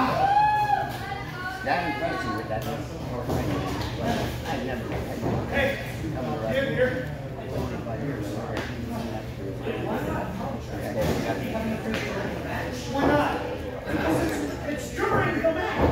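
A crowd of spectators cheers and shouts in an echoing room.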